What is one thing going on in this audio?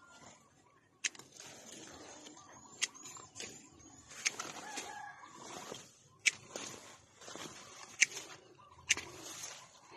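Pruning shears snip sharply through branches.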